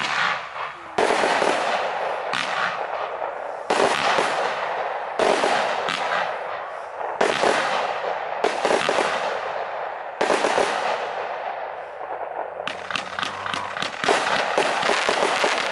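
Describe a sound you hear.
Crackling stars sizzle and pop after the fireworks bursts.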